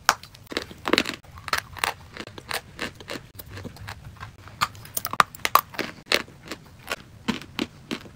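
Paper crinkles close by.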